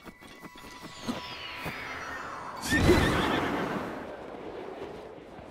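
A loud whoosh rushes past and fades.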